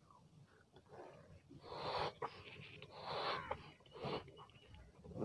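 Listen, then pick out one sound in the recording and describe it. A boy blows air into a balloon in puffs.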